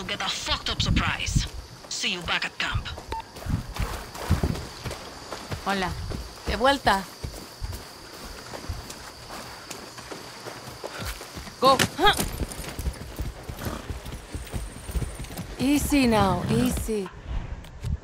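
A horse's hooves thud on dirt.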